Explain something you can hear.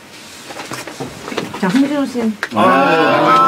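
A man talks loudly and cheerfully in a room.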